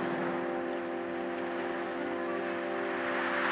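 A man splashes through the water.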